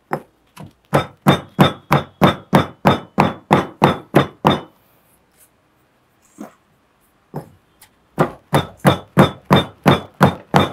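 A pestle pounds steadily in a mortar.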